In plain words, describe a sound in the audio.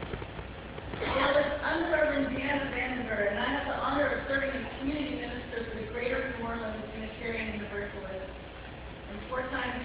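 A woman speaks calmly through a microphone in an echoing room.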